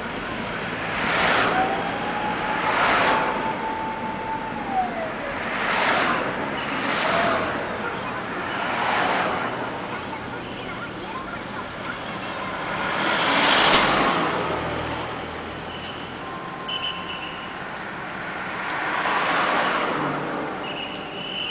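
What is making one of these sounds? Passing cars whoosh by close at hand, one after another.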